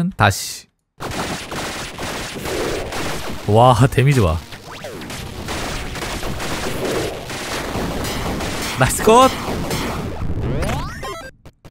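Electronic game effects blast and whoosh during a fight.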